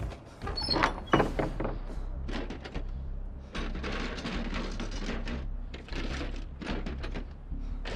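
Hands rummage through the contents of a wooden chest.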